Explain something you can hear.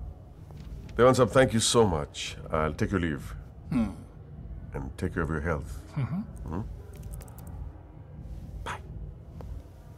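A middle-aged man speaks in a low, quiet voice, close by.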